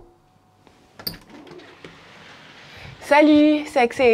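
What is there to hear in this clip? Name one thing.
A door latch clicks and the door swings open.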